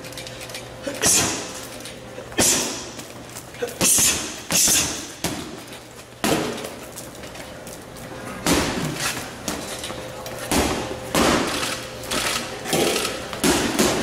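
Gloved punches thump hard against a heavy bag.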